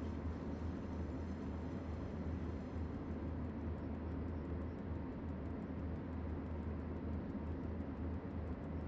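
A train's engine rumbles low and steady.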